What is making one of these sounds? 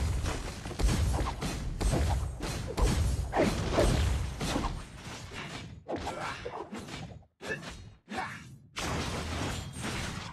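Game spell effects whoosh and clash in a fight.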